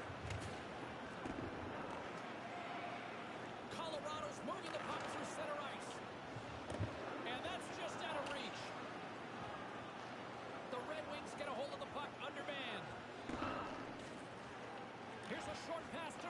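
Skates scrape across ice.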